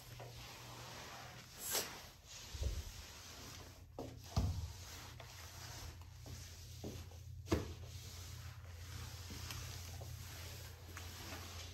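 Fabric rustles and brushes against the microphone close up.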